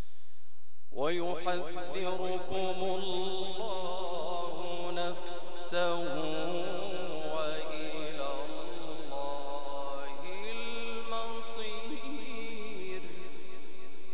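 A man chants in a long, wavering, melodic voice through a microphone and loudspeakers.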